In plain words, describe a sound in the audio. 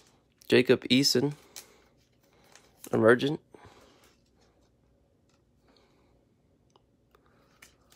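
A plastic card sleeve crinkles and rustles as a card slides into it.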